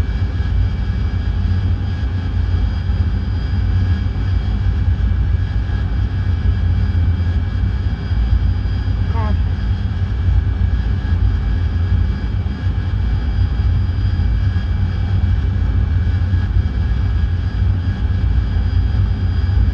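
A jet engine roars steadily in the cockpit.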